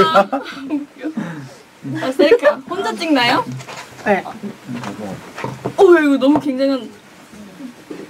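A young man talks and laughs.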